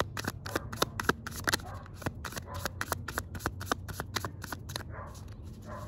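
Playing cards flick and snap rapidly as they are shuffled close by.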